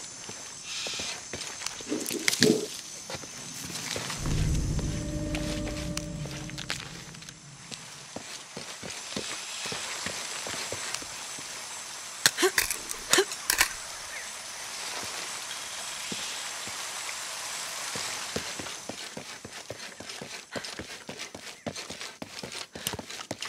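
Footsteps crunch along a rocky dirt path.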